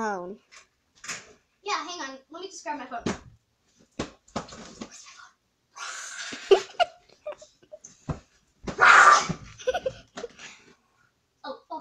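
A young girl talks and laughs excitedly close by.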